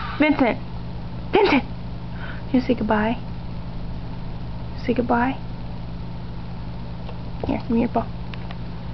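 A dog whines in short, high bursts.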